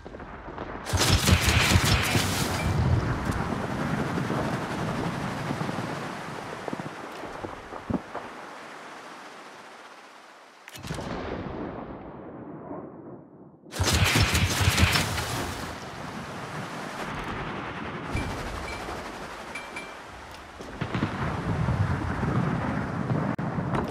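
Torpedoes launch from a destroyer with sharp bursts.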